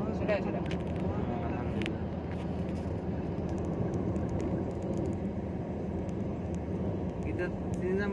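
A car's engine hums steadily.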